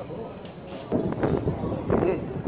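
Women and men chatter nearby in a crowd.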